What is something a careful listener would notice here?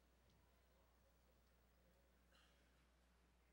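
A large crowd murmurs softly in an echoing hall.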